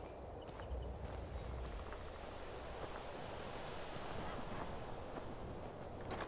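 Footsteps crunch softly on grass and dirt.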